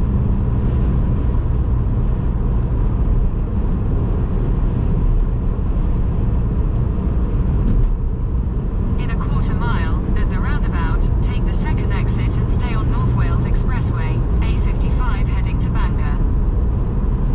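A car engine hums steadily with road noise from the tyres inside the car.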